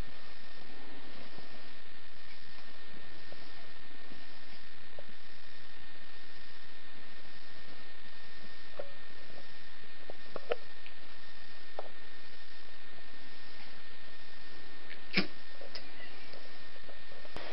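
Bedding rustles as dogs wrestle.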